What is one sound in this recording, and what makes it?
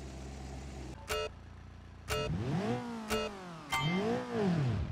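Countdown beeps sound in a quick series.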